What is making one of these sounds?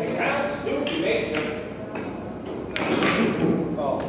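A cue strikes a billiard ball and the balls clack together.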